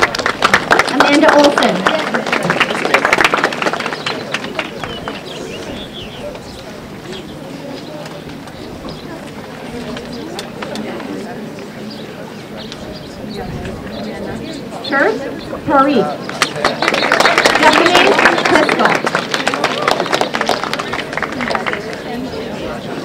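An audience claps its hands.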